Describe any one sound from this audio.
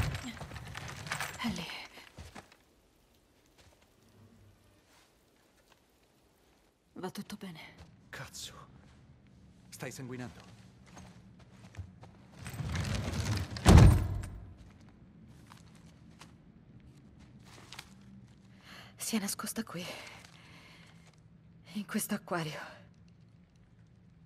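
A young woman speaks softly and with emotion, close by.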